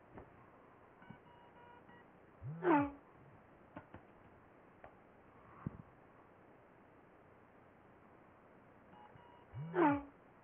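A phone plays a short electronic alert tone.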